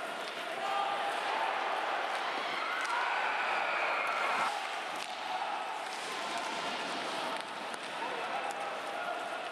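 A large crowd roars in an echoing arena.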